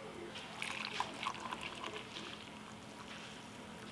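Coffee pours from a pot into a cup.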